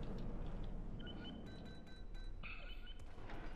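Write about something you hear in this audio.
Electronic keypad buttons beep as they are pressed.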